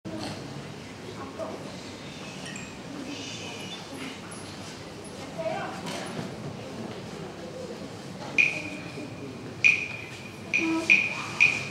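A large choir sings softly in a large echoing hall.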